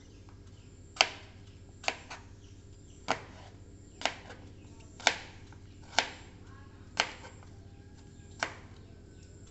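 A knife chops through apple onto a plastic cutting board with sharp knocks.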